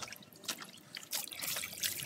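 Water pours from a scoop onto a puppy.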